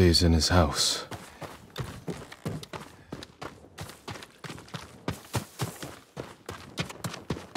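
Footsteps crunch along a dirt path outdoors.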